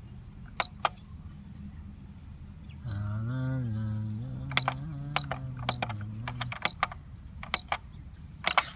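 An electronic controller beeps sharply as its buttons are pressed.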